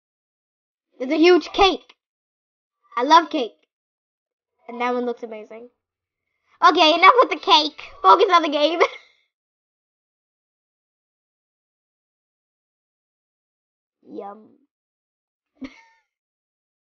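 A young girl talks excitedly into a microphone, close up.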